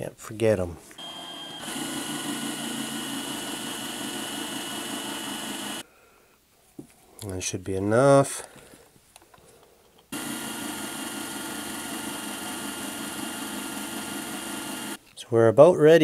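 A small rotary tool whirs steadily as it grinds metal.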